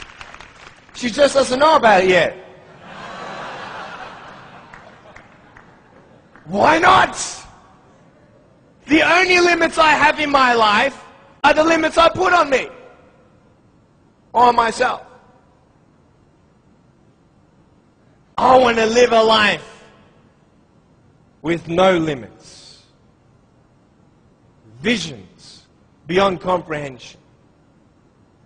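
A young man speaks with animation through a headset microphone, pausing between phrases.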